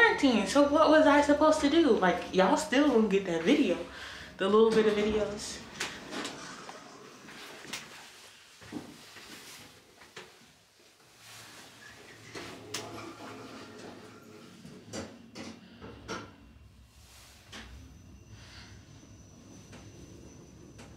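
An elevator hums steadily as it moves.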